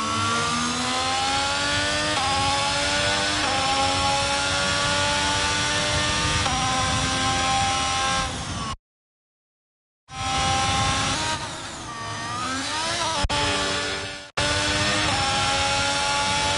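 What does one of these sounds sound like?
A racing car engine screams at high revs, climbing in pitch and dropping with each gear change.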